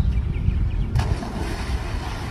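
Water splashes loudly as something breaks the surface.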